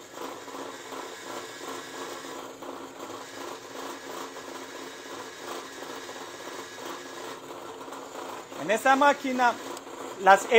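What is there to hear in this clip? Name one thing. A drill press whirs steadily as its bit bores into wood.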